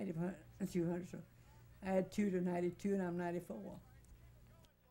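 An elderly woman speaks with animation close to a microphone.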